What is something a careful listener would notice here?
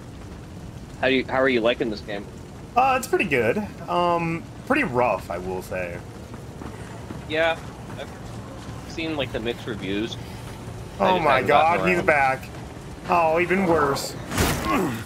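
A man talks animatedly into a close microphone.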